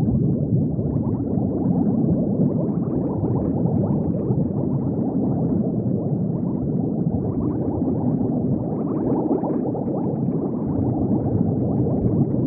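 Bubbles gurgle and burble steadily underwater.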